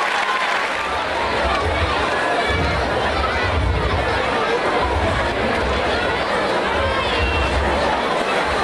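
A large crowd of children and adults chatters in an echoing hall.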